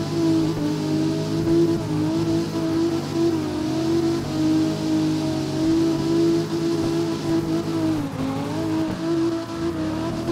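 A car engine revs high and wavers as the car drifts.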